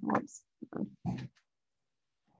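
A woman speaks briefly through an online call, slightly muffled.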